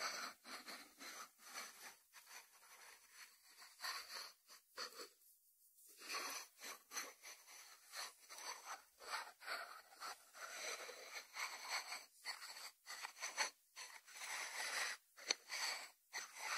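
Fingertips scratch across a ceramic lid.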